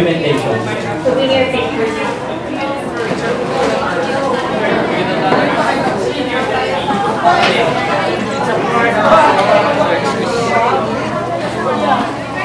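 A crowd of young people chatters and murmurs nearby.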